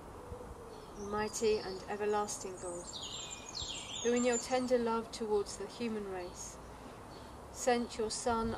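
A middle-aged woman reads aloud calmly, close by.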